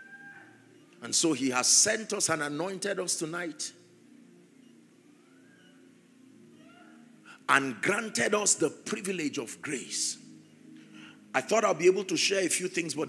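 A man preaches forcefully into a microphone in bursts, heard through loudspeakers.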